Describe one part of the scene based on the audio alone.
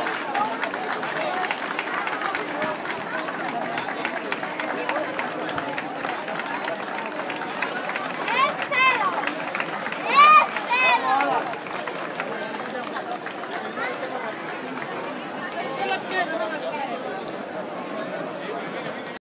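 A large outdoor crowd chatters steadily.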